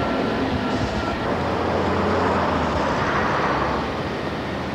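A tram rolls by on its rails.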